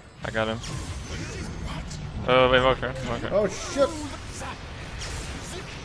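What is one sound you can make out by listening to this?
Magic spells whoosh and crackle in a fantasy battle game.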